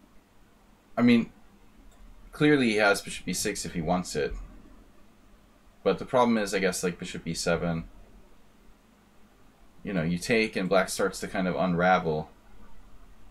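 A man speaks calmly close to a microphone, in short bursts with pauses.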